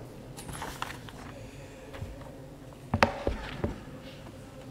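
Paper pages rustle as a booklet is handled.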